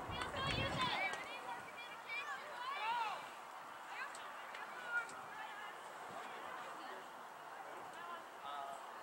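Spectators cheer and call out from the sidelines of a field outdoors.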